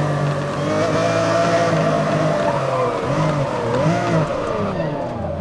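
A sports car engine roars loudly, then drops in pitch as the car slows down.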